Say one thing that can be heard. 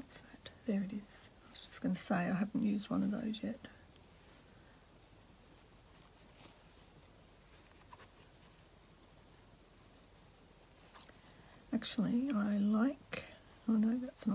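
A needle and thread pull softly through fabric.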